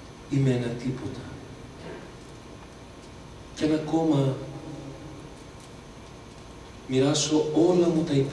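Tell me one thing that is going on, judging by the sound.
A man sings into a microphone over loudspeakers, in bursts with pauses between.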